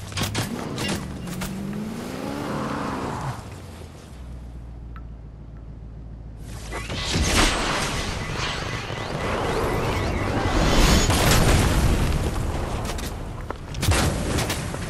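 A car engine roars and revs.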